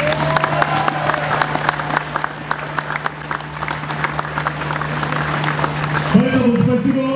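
A group of people clap their hands outdoors.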